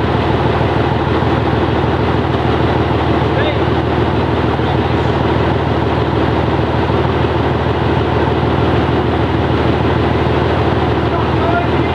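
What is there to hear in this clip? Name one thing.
A diesel engine idles with a steady, deep rumble close by.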